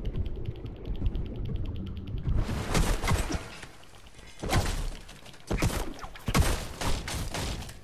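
A pickaxe strikes wood with sharp, repeated knocks.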